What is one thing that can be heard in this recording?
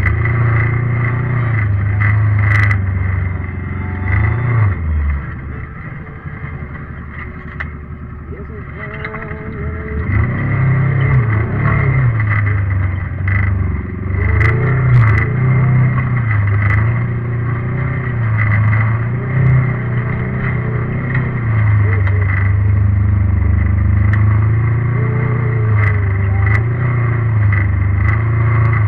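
An off-road vehicle's engine roars and revs up and down close by.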